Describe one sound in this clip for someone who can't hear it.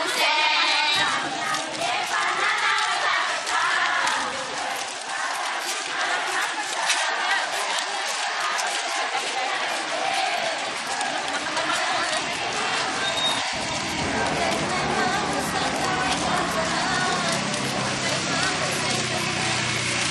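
A crowd of women chants together loudly outdoors.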